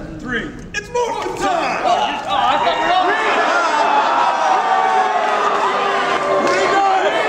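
Several men and a woman shout together in unison through microphones.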